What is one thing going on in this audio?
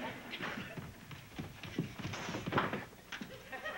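Footsteps thump down wooden stairs.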